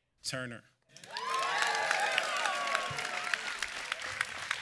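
People in a crowd cheer and whoop.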